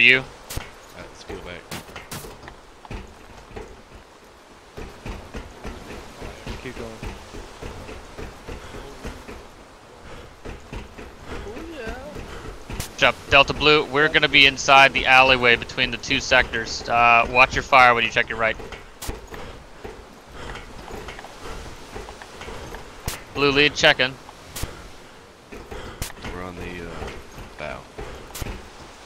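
Footsteps thud on a metal deck.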